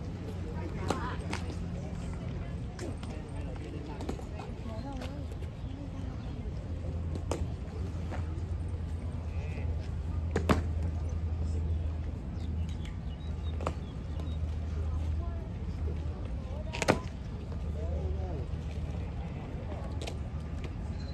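Boots strike stone in sharp, scattered stamps and clicks.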